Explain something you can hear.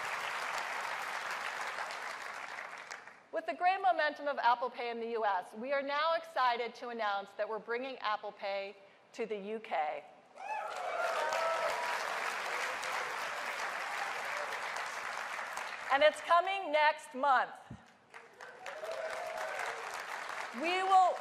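A large audience applauds and cheers in a big echoing hall.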